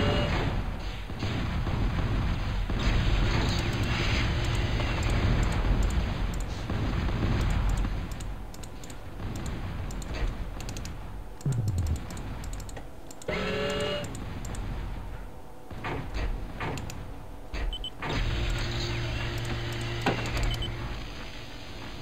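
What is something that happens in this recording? Explosions rumble.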